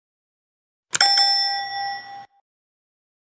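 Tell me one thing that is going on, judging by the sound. A bell chimes brightly and rings out.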